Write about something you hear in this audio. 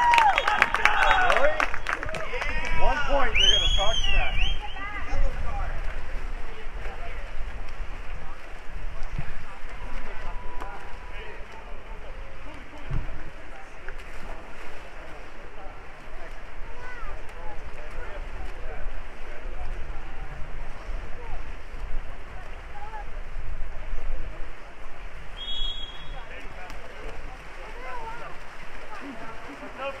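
Water splashes as swimmers thrash and churn in a pool.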